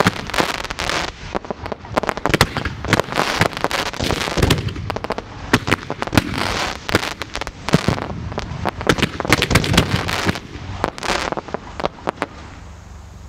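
Fireworks bang and crackle in rapid bursts.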